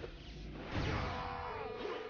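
A flying disc slams into a wall with a loud electric bang.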